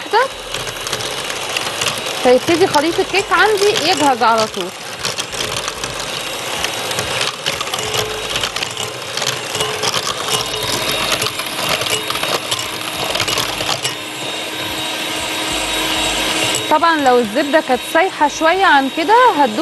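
An electric hand mixer whirs steadily, beating batter in a bowl.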